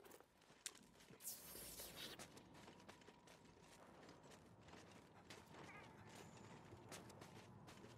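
Footsteps crunch over snow.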